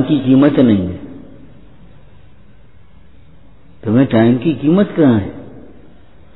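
An elderly man speaks calmly into a microphone, with long pauses.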